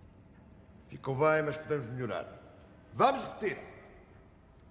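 An elderly man speaks loudly and tensely.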